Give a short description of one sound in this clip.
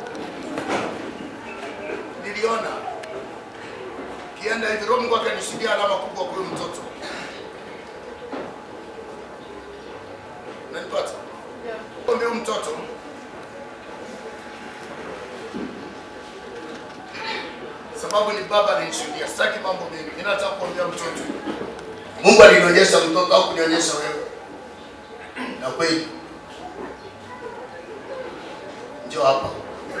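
A man preaches through a microphone and loudspeakers in an echoing hall, speaking in bursts with pauses.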